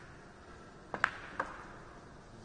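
Billiard balls clack together on a pool table.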